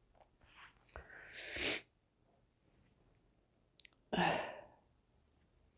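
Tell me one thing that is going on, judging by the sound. A middle-aged woman sniffles while crying.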